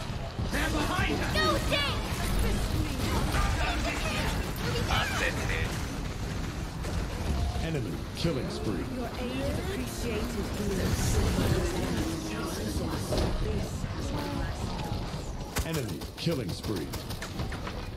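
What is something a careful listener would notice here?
Magic blasts zap and crackle in rapid bursts.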